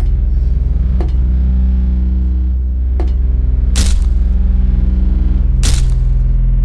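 Heavy footsteps thud slowly on a hard floor.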